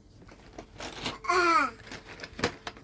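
A toddler babbles briefly up close.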